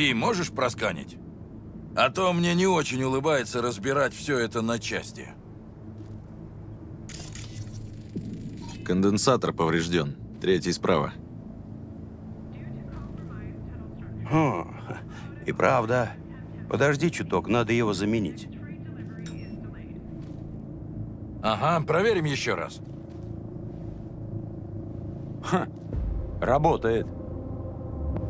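A man speaks calmly in a low voice.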